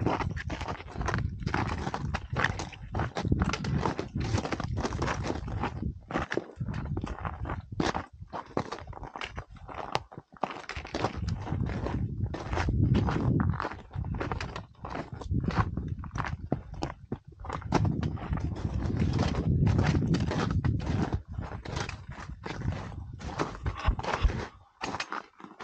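Strong wind gusts and buffets loudly across an open mountainside.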